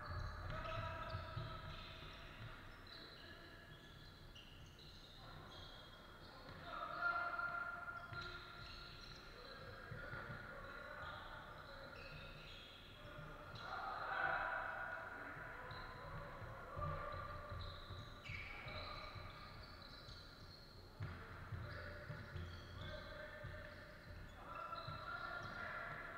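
Young players shout to each other from across the hall.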